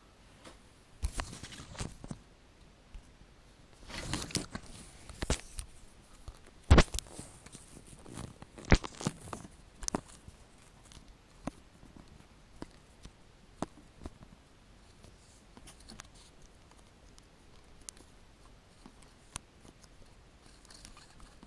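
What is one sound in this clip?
Knocks and rustles of handling the recorder sound close by.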